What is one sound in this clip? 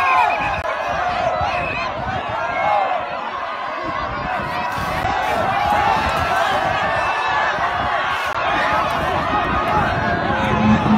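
A large crowd of men and women shout and talk over one another outdoors, close by.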